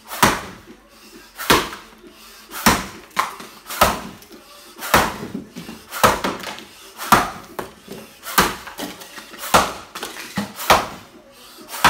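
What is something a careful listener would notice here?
An axe chops into wood with sharp, regular thuds, about once a second, in a room with a slight echo.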